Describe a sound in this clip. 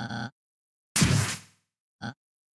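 A sharp electronic whoosh bursts out.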